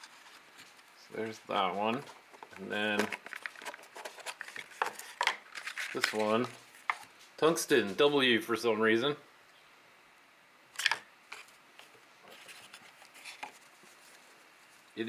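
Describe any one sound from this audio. Small cardboard boxes tap and scrape as hands open them.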